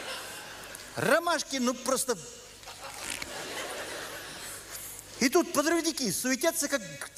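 An elderly man reads aloud into a microphone with expression.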